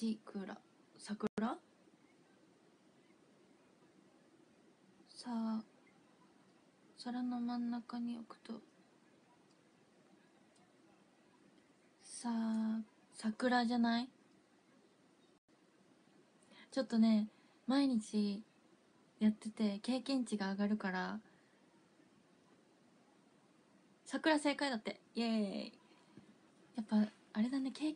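A young woman speaks casually in short bursts, close to a microphone.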